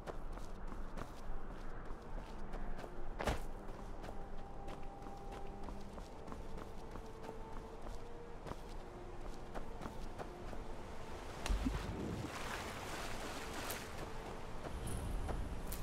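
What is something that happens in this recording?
Footsteps crunch on rock and gravel.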